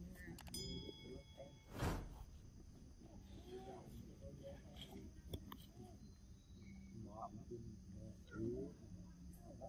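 A young monkey squeaks softly nearby.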